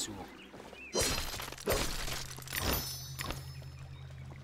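A blade slashes and strikes with sharp, ringing hits.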